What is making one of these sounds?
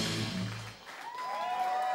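A band plays loud rock music.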